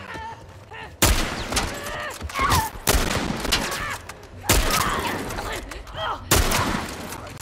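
Rifle shots crack loudly, with ringing echoes.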